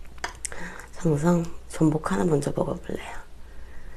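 A young woman speaks close to a microphone in a bright, animated voice.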